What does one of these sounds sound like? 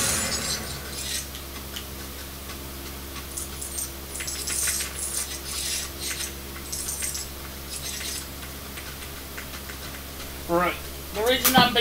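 Video game clatter and clicks play from a television.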